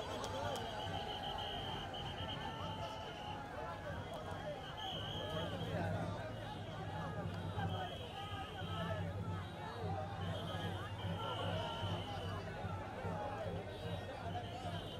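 A large crowd chatters and shouts excitedly close by, outdoors.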